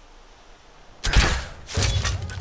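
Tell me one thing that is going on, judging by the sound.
A crossbow fires a bolt with a sharp snap.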